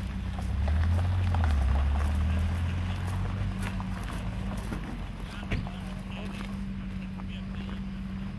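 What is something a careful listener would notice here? A sports car engine idles with a deep rumble as the car rolls slowly forward.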